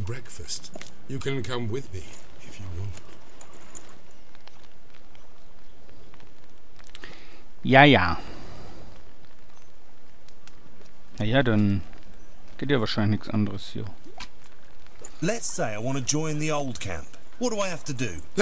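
A man speaks calmly and close, in short phrases.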